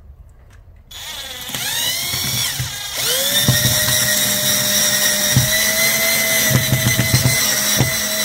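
A cordless drill whirs steadily as it drives a screw, its whine rising as it spins up.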